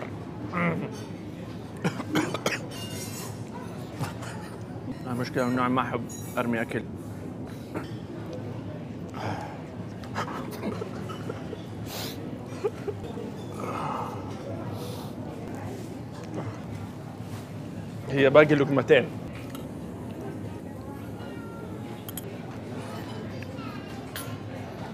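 A room full of people murmurs in the background.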